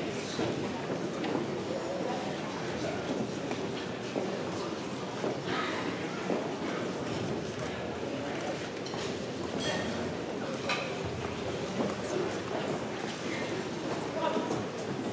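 A band plays music on a stage.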